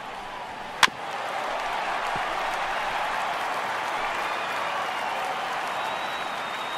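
A crowd cheers louder after the hit.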